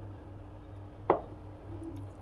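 A metal bowl clinks down on a wooden table.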